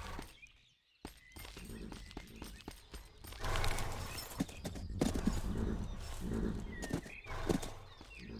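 Horse hooves clop on gravel.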